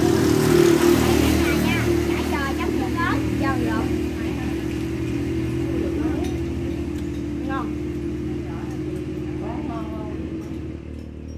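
Women talk and laugh together close by.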